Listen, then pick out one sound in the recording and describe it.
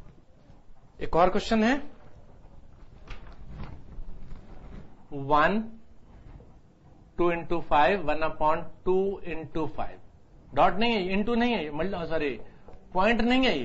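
A middle-aged man speaks clearly into a clip-on microphone.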